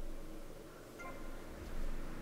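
A short electronic chime sounds as a game menu closes.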